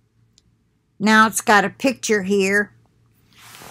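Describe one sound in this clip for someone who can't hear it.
An elderly woman speaks close to a microphone.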